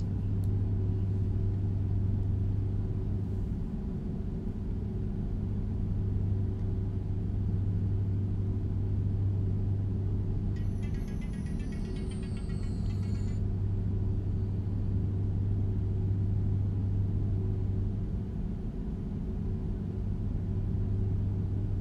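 A truck engine hums low and steady while driving.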